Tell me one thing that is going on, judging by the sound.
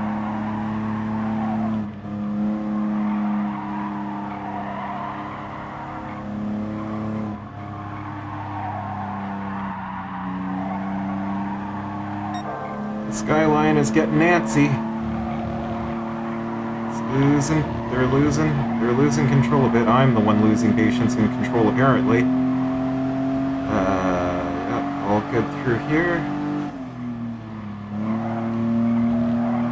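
A racing car engine hums steadily, rising and falling in pitch as it shifts gears.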